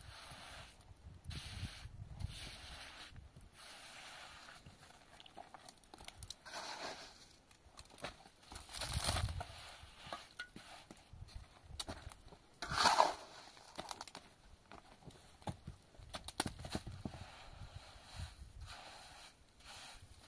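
A trowel scrapes plaster across a rough roof surface.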